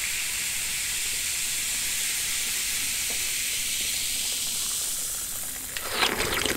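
Fizzy soda pours and hisses over ice.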